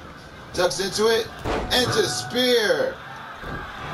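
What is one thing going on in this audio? A body slams heavily onto a ring mat.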